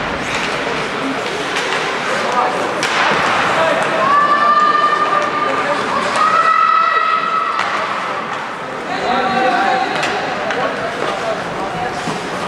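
Skates scrape and hiss across ice in a large echoing arena.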